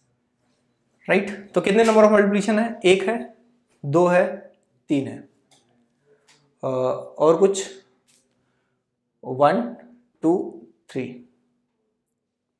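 A young man explains calmly and clearly into a close microphone.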